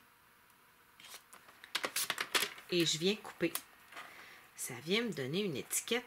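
Paper slides and scrapes on a hard plastic surface.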